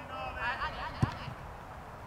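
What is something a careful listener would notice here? A football is kicked with a sharp thud.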